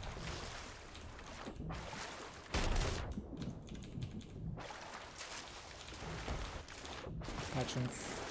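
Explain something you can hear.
Footsteps thump on the wooden rungs of a rope ladder.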